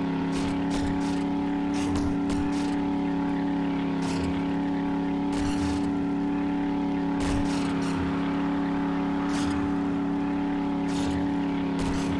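Bushes scrape and crunch against a truck in short bursts.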